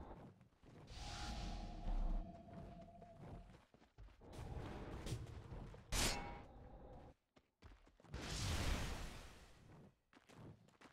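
Magic spells burst with rushing whooshes.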